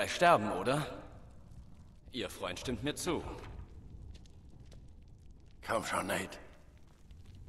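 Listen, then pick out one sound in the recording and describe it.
Men speak tensely, close by.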